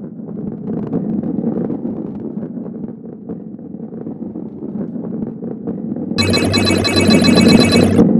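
A ball rolls with a low rumble along a track.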